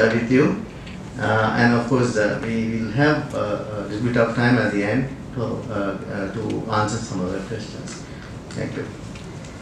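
A man speaks calmly through a microphone and loudspeakers.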